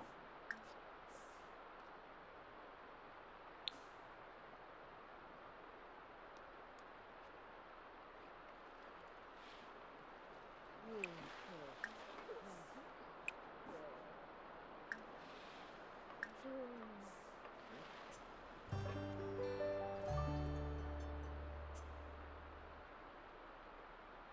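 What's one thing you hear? Steady rain patters.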